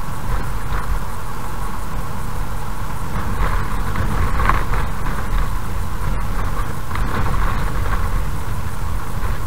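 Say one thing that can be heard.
Tyres rumble and rattle over a rough road.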